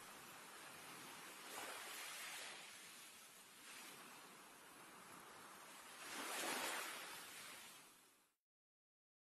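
Small waves lap and wash gently against moored boats.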